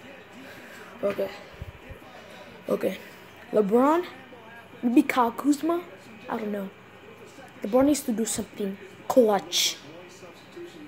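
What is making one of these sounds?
A boy speaks close to the microphone with animation, in short bursts.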